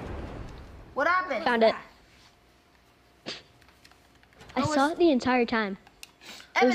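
A boy talks excitedly into a microphone.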